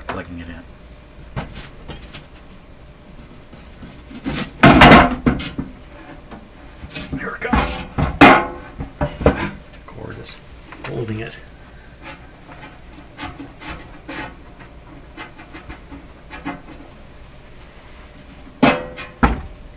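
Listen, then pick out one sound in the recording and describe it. Hands bump and rub against a metal instrument case.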